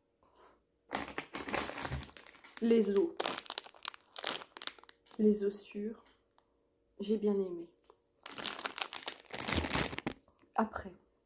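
A plastic candy bag crinkles in a woman's hands.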